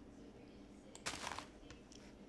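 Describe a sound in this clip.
A block is placed with a short soft thud.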